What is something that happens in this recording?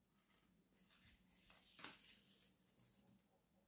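Thin fabric rustles softly as hands handle it.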